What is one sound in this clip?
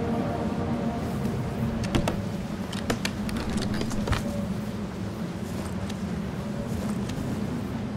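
A heavy wooden lid thuds and knocks open.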